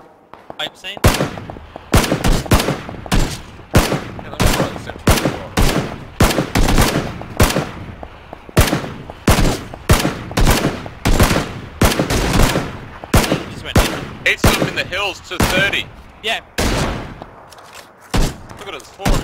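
A rifle fires single shots in a steady, repeated rhythm.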